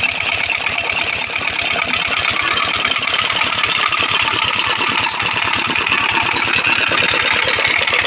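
An engine-driven crusher runs with a fast, steady chugging and clatter.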